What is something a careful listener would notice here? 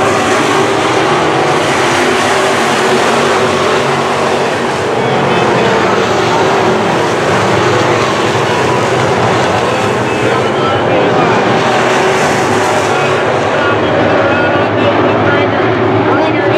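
Loud race car engines roar and rumble steadily as they circle a dirt track outdoors.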